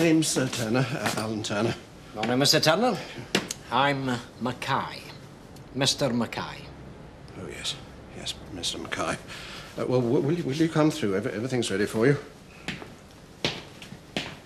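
A young man talks nervously close by.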